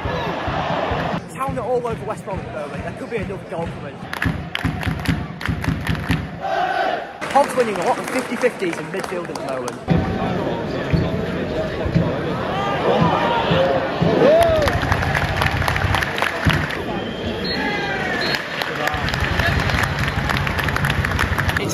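A large stadium crowd chants and cheers in the open air.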